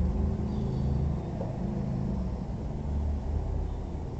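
A marker squeaks faintly on a whiteboard.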